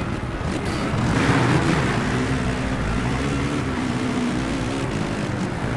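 Many dirt bike engines roar loudly as they pull away together.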